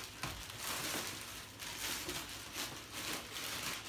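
Cardboard flaps scrape and thump.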